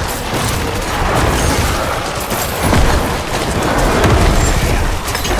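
Spell blasts and weapon impacts crash repeatedly in a fierce fight.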